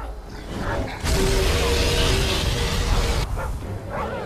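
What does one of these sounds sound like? A burst of fire roars loudly.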